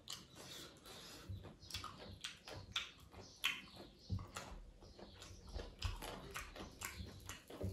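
A hand squishes and mixes rice and curry on a metal plate.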